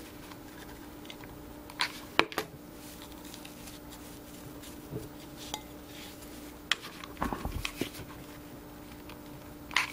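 A glue gun clicks.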